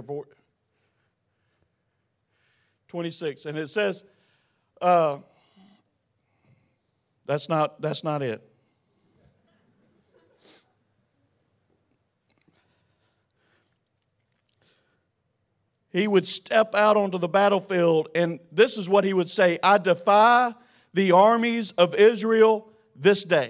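A man preaches with animation into a microphone, with long pauses between phrases.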